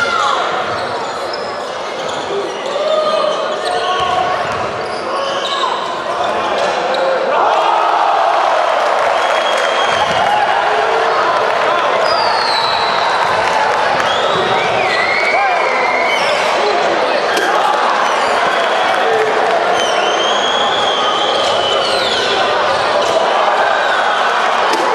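A crowd cheers and chatters throughout a large echoing hall.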